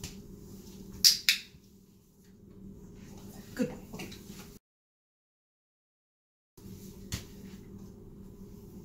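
A dog's claws tap on a wooden floor.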